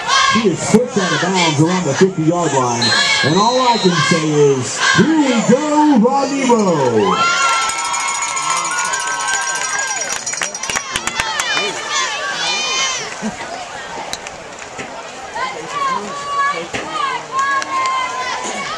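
A crowd cheers and shouts in the distance outdoors.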